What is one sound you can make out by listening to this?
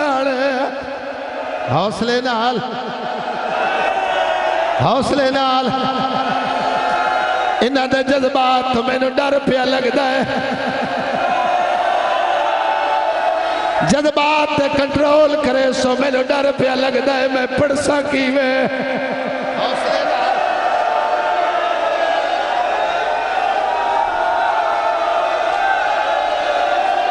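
A man chants loudly through a microphone and loudspeakers.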